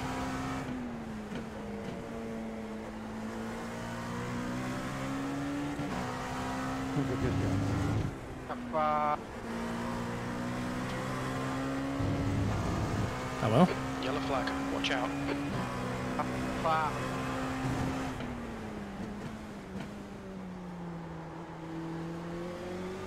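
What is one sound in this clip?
A racing car engine drones steadily, rising in pitch and dropping with each gear change.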